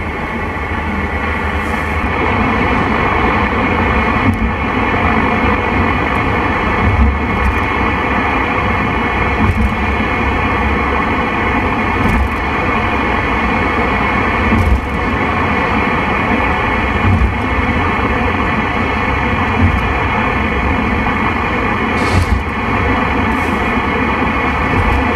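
A car drives along a highway with steady engine and road rumble.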